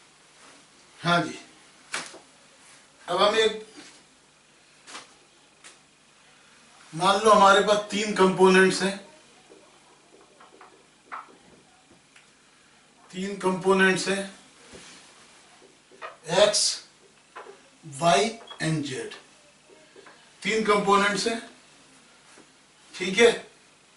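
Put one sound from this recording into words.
A man speaks calmly and clearly into a microphone, in short bursts with pauses.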